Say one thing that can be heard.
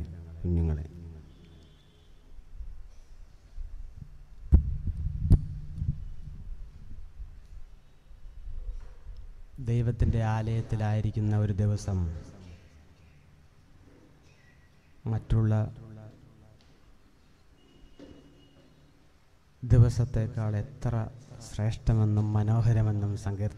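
An elderly man speaks slowly and solemnly into a microphone, heard through loudspeakers.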